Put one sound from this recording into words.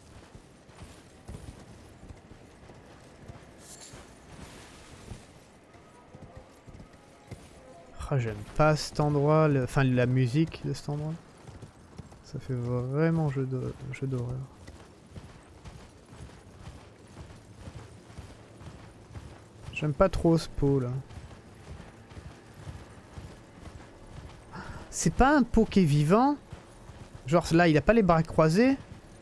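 Horse hooves thud at a steady gallop on hard ground.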